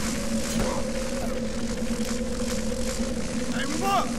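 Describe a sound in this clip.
Footsteps of several attackers crunch on snow as they run closer.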